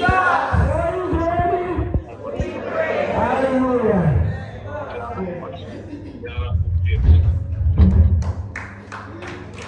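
An elderly woman sings into a microphone through loudspeakers in an echoing room.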